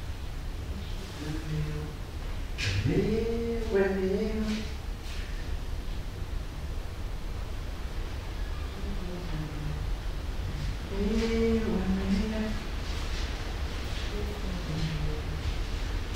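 A man sings a slow, drawn-out tune in a low voice.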